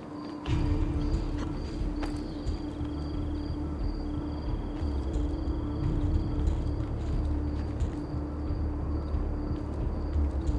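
Hands and feet scrape and knock against stone.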